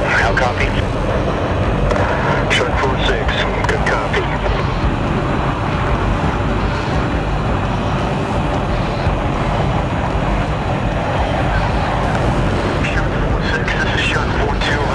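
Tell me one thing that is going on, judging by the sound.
Wind rushes loudly past a cockpit canopy.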